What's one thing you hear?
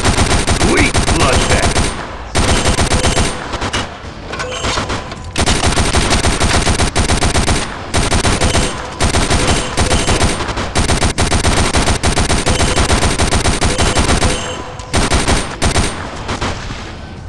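A heavy machine gun fires in long rapid bursts.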